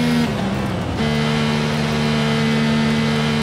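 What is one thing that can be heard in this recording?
A racing car engine drones at a steady pitch.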